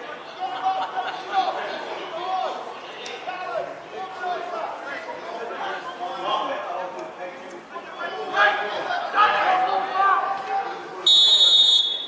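Adult men talk casually nearby, outdoors.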